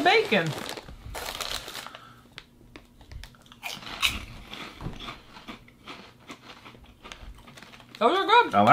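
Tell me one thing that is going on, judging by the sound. Crisp chips crunch as people chew.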